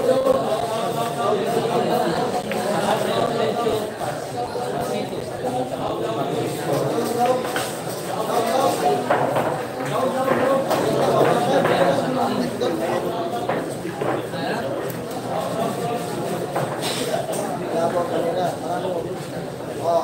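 A crowd of men chatters loudly nearby.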